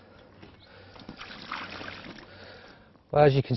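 Water pours and splashes from a bucket.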